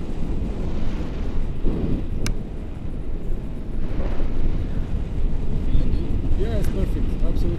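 Wind rushes loudly past the microphone, heard outdoors in open air.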